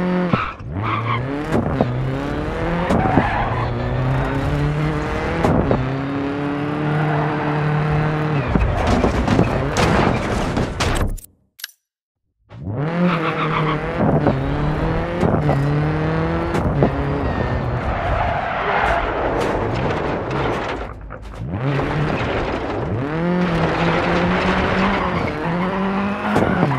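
A car engine revs hard, its pitch rising and dropping sharply with each gear change.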